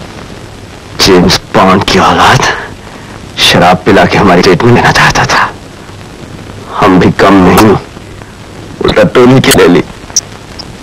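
A man speaks with emotion, close by.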